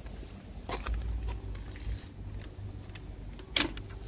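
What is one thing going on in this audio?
A wooden gate latch clicks open.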